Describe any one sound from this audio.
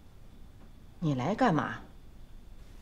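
An elderly woman speaks sharply, close by.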